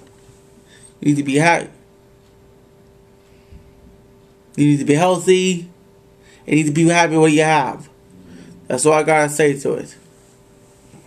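A young man speaks calmly and closely in short bursts.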